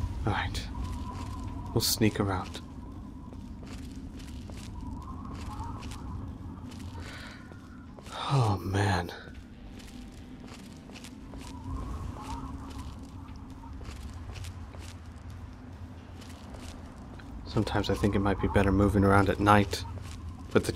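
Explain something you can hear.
Footsteps crunch steadily over dry ground.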